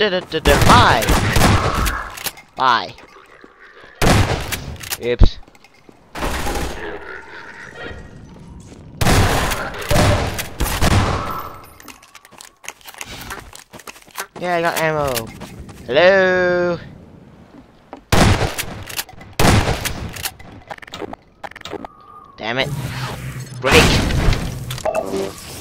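A shotgun fires loud, booming blasts.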